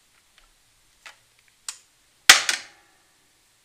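A plastic wire connector snaps and clicks.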